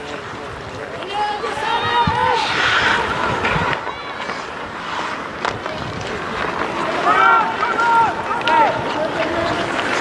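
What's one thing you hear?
Players shout to each other far off outdoors.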